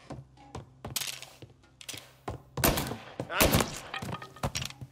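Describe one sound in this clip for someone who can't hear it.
Gunshots crack in quick bursts, echoing down a hallway.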